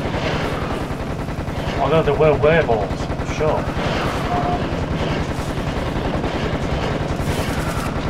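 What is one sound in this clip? A machine gun fires rapidly and steadily.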